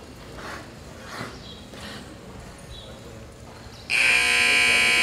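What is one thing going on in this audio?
Horses walk with soft hoof thuds on loose dirt.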